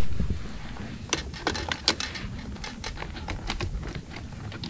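Metal clicks and clinks.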